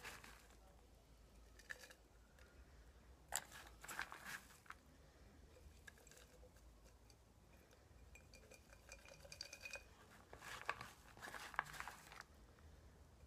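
A glass jar clinks and knocks as it is handled.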